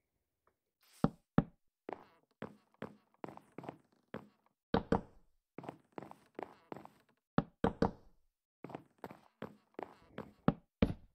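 Wooden blocks are set down with quick soft knocks, one after another.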